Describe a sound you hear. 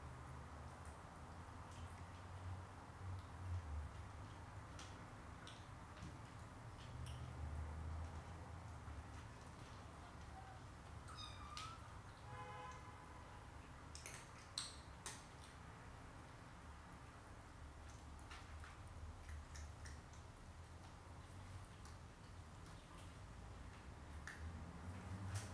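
Cats lap and chew food from a plastic bowl with soft wet clicks.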